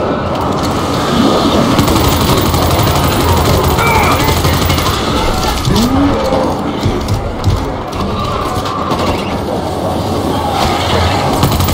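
A large horde of creatures groans and snarls.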